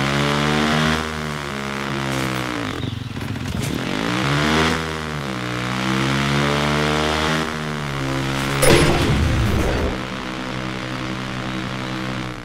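A motorcycle engine revs up and down as it speeds along a road.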